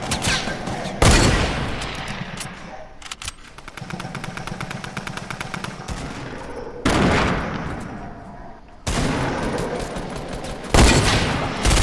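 A rifle fires loud single shots.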